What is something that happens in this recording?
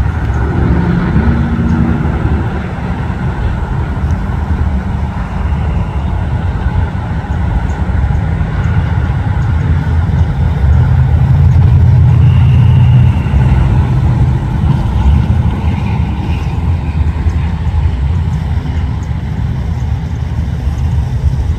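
A classic street rod coupe drives past with a low, rumbling exhaust.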